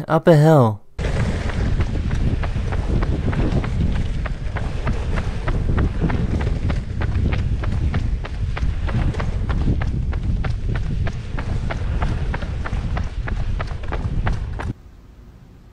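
Skateboard wheels roll loudly on rough asphalt.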